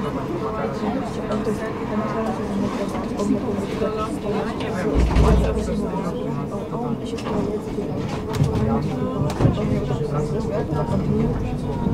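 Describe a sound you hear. A tram rolls past close by with a low rumble.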